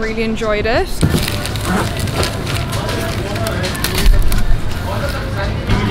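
Plastic sheets crinkle and rustle as hands handle them.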